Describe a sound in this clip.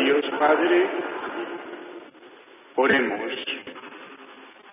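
A man speaks through a microphone, echoing in a large hall.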